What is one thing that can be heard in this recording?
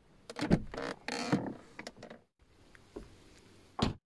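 A car door swings open.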